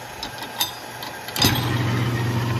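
A brass cartridge case clinks into a metal holder.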